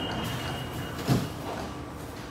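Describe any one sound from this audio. Sliding train doors thud shut.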